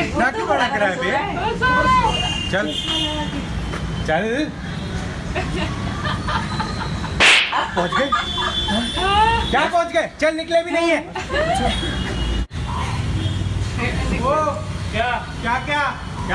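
Young women laugh and chat close by.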